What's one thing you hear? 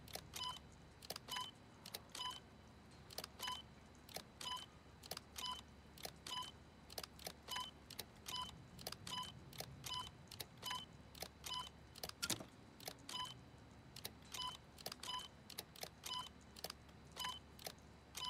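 Short electronic beeps and clicks sound again and again.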